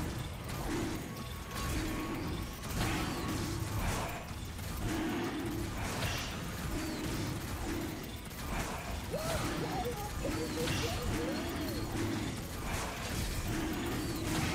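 Sharp hit sounds strike again and again.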